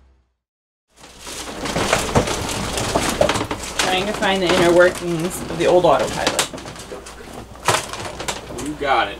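Objects clatter and knock in a compartment.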